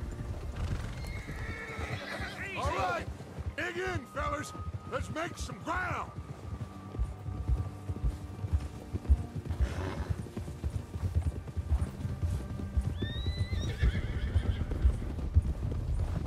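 Horses' hooves thud in quick rhythm on snow.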